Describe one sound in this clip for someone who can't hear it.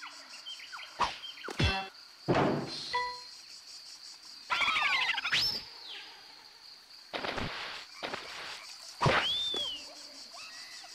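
Cartoonish video game sound effects zip, boing and chime.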